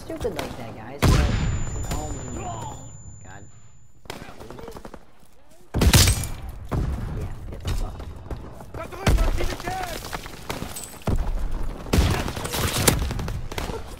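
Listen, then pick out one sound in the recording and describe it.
Shotgun blasts boom loudly, one at a time.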